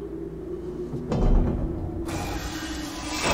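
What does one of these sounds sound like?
A heavy metal door slides open with a loud hiss.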